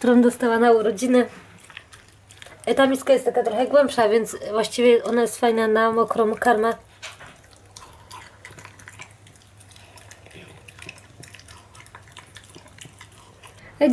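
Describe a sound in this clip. A dog eats noisily from a bowl.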